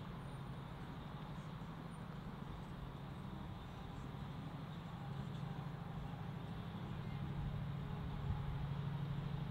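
A diesel locomotive engine rumbles steadily as it approaches, growing louder.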